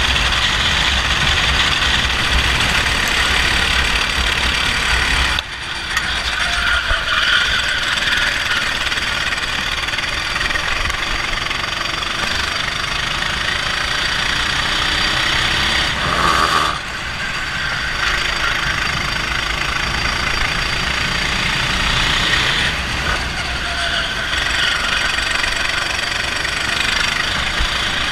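A go-kart engine buzzes loudly close by, rising and falling in pitch.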